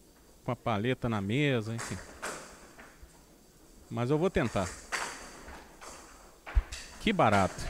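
A ball knocks sharply against a bat.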